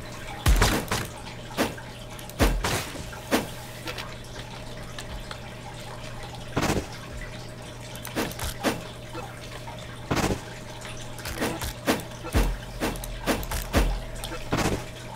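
Sharp game sword slashes swish and strike again and again.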